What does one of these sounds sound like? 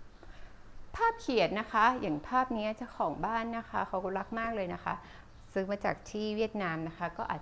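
A young woman speaks brightly and with animation, close by.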